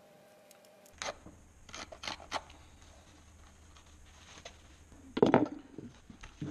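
Hands tap and rub a leather sole.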